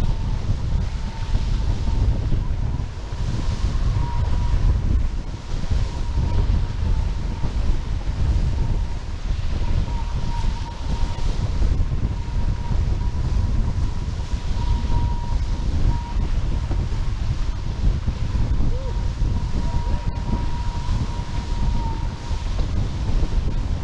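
Strong wind buffets loudly throughout.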